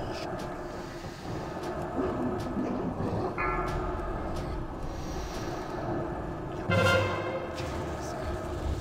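Magic spells crackle and chime amid a busy fight.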